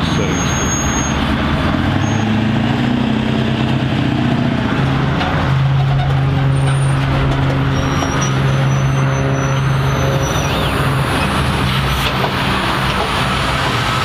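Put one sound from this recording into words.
A pickup truck's engine rumbles as it pulls a trailer away and fades into the distance.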